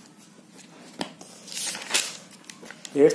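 A notebook page rustles as it is turned.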